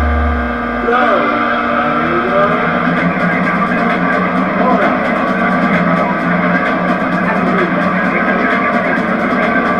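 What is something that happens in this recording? A car engine roars and climbs in pitch as the car speeds away.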